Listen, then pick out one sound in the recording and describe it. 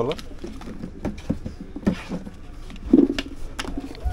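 Small sweets rattle and clatter out of a metal tin onto a counter.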